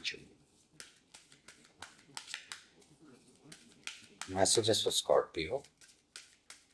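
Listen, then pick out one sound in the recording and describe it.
Playing cards are shuffled with soft riffling flicks close by.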